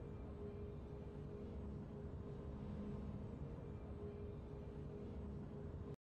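A triumphant victory fanfare plays with a deep swelling tone.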